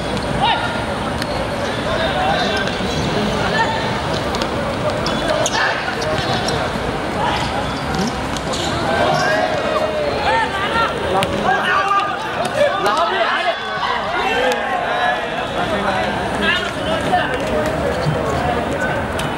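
Young men shout and call to each other.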